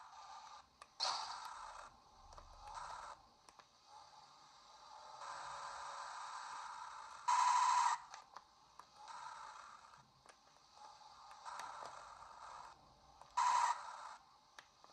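Tinny electronic game sounds and music play from a small speaker.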